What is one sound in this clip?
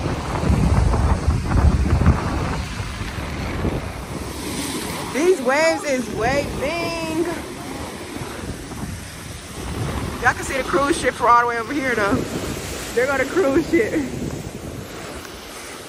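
Waves wash and break on a sandy shore.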